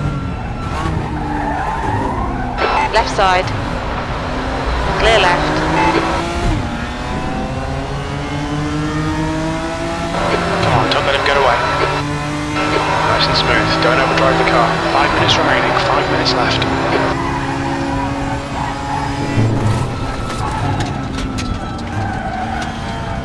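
A racing car engine roars and shifts through the gears.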